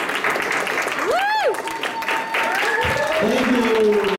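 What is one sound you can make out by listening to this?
Audience members whoop and cheer loudly.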